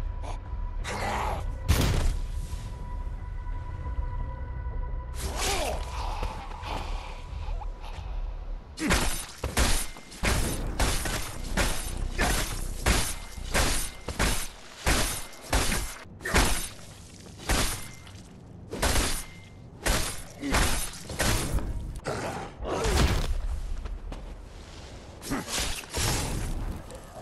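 Sharp blades slash and thud into flesh again and again.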